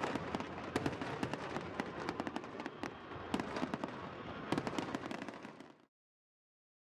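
Fireworks crackle and pop in quick bursts.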